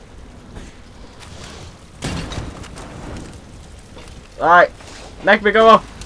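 A hanging sack bursts into flames and roars.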